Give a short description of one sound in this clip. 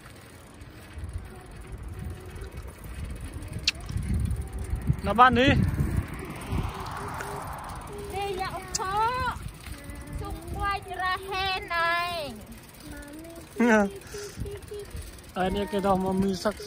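Bicycle tyres roll over pavement.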